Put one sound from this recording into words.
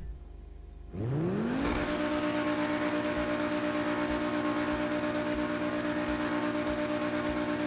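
A sports car engine revs up sharply and roars loudly and steadily.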